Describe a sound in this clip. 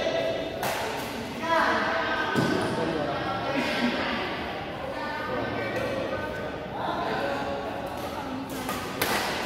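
Rackets smack shuttlecocks with sharp cracks in an echoing hall.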